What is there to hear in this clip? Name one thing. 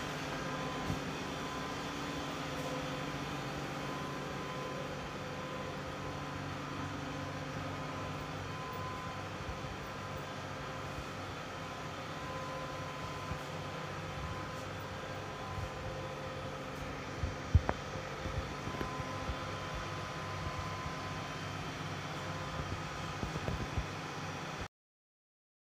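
A bus engine hums steadily nearby.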